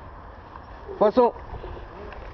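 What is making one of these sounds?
A fishing reel whirs briefly.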